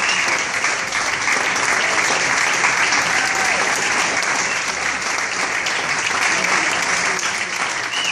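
A crowd applauds steadily in an echoing room.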